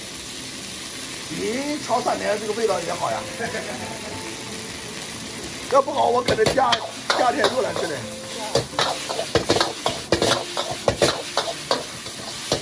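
Noodles sizzle in a hot wok.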